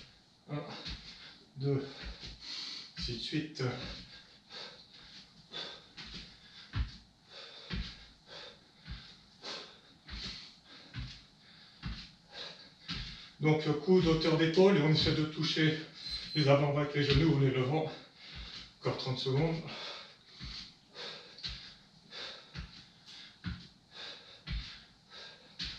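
Bare feet thump lightly on a wooden floor in a steady rhythm.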